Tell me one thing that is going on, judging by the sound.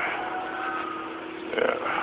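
A vacuum cleaner runs with a steady hum.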